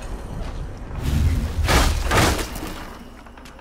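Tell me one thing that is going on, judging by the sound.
Wooden planks burst and splinter in a loud crash.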